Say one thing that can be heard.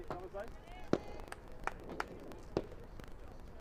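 Hockey sticks crack sharply against a ball.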